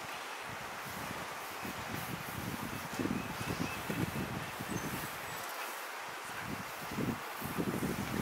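A shallow river rushes over stones.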